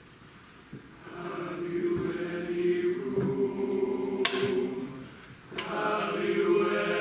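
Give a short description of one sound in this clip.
A large choir sings together in a reverberant hall.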